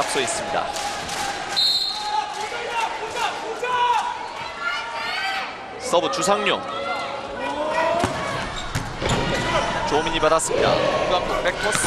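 A crowd cheers and chants in a large echoing hall.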